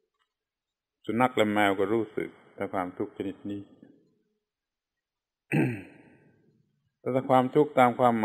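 An elderly man speaks calmly and slowly, with long pauses.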